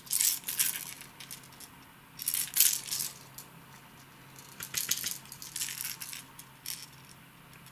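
Small hard plastic objects click and rattle as they are handled.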